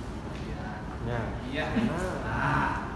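A man speaks calmly through a loudspeaker.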